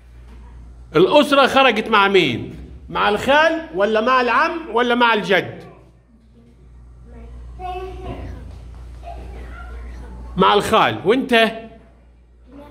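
A young boy speaks loudly and with animation close by.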